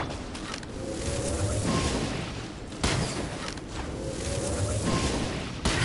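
A bow twangs as arrows fly.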